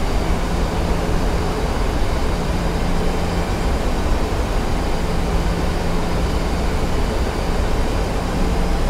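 Jet engines roar steadily.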